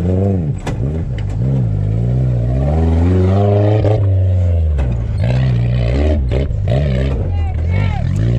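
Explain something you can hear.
An off-road truck engine revs hard and roars up close, rising and falling in pitch.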